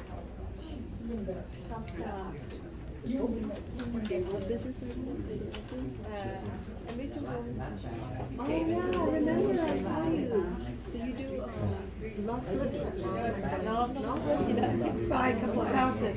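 Several people talk in the background of a room.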